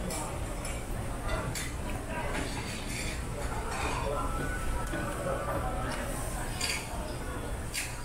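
A man chews food close by.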